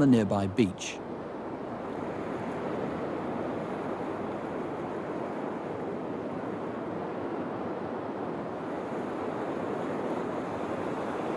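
Waves wash gently onto a beach outdoors.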